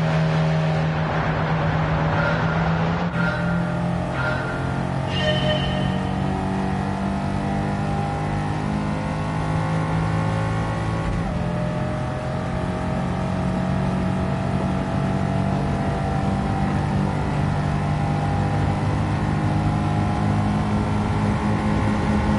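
A racing car engine roars loudly, climbing in pitch between gear shifts.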